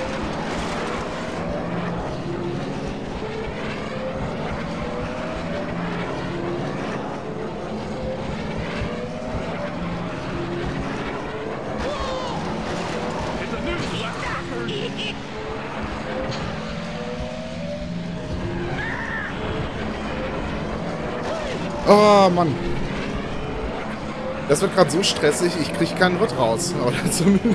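A racing engine whines and roars steadily at high speed.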